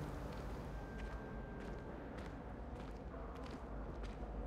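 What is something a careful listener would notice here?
Footsteps tap softly on a stone floor in an echoing hall.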